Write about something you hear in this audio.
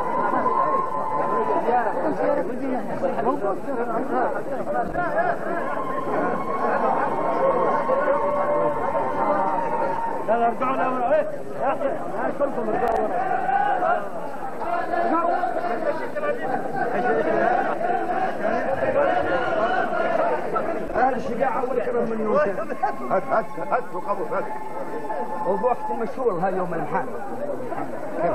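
A crowd of men talk and greet one another close by outdoors.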